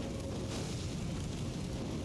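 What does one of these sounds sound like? A fireball bursts into flame with a whoosh.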